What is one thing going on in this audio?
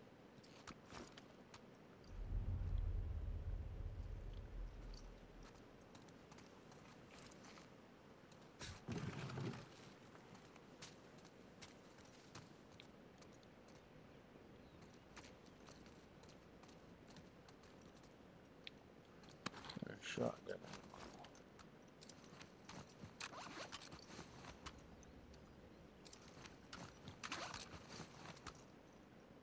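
Footsteps shuffle slowly across a hard floor.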